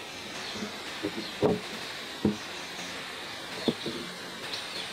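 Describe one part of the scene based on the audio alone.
A wooden tabletop knocks and thuds as it is shifted into place.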